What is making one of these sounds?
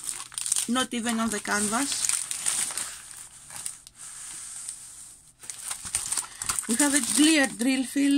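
Plastic packets crinkle and rustle as they are handled.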